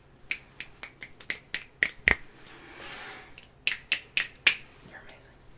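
A man snaps his fingers rapidly.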